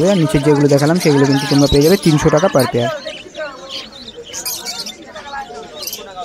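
Many small parrots chirp and chatter close by.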